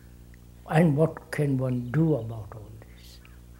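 An elderly man speaks calmly and slowly, close to a microphone.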